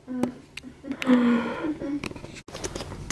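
A young woman speaks casually nearby.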